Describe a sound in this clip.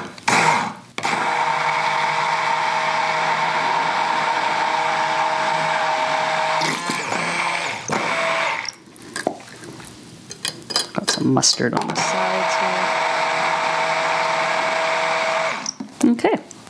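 An immersion blender whirs steadily in a cup.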